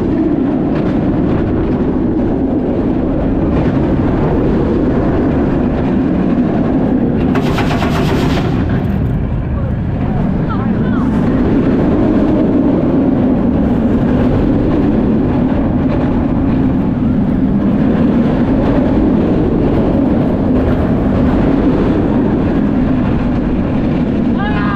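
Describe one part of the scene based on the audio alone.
A roller coaster car rumbles and clatters along its track at speed.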